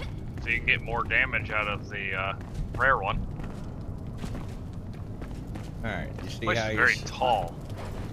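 Footsteps thud on a hard floor.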